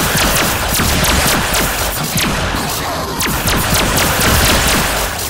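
A gun fires in rapid bursts of loud shots.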